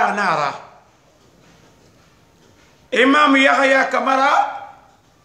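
An elderly man speaks close by with animation, in short bursts with a pause between.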